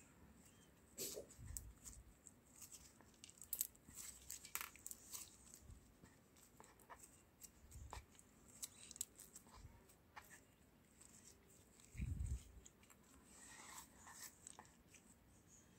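Sticky slime squelches and crackles as it is squeezed by hand.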